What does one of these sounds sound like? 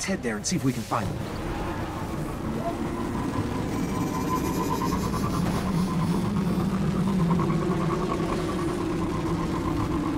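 A hovering vehicle's engine hums steadily as it speeds along.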